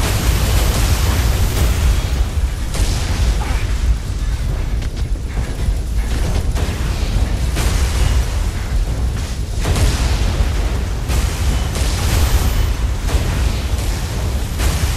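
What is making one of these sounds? A low engine rumble drones steadily.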